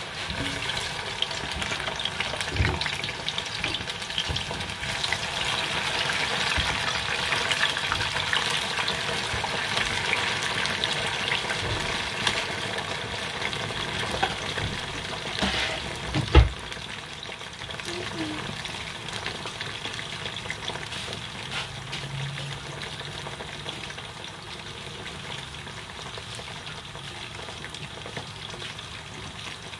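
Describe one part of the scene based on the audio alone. Hot oil sizzles and crackles steadily in a pot.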